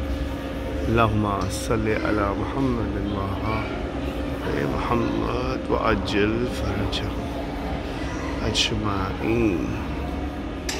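A man recites prayers aloud in an echoing hall.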